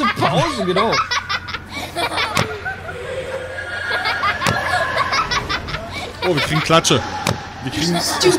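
A man laughs into a microphone.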